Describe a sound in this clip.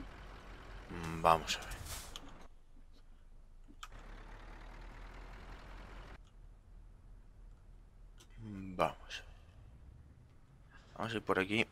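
A truck engine revs up in short bursts.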